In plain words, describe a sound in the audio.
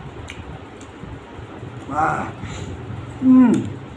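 A man bites into crisp cucumber with a crunch.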